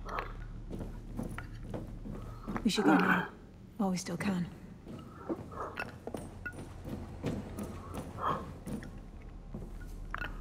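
Footsteps thud quickly along a hard floor.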